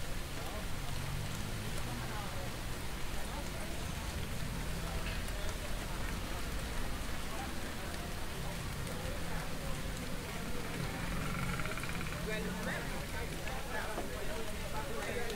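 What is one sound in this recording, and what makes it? Rain patters on a wet street outdoors.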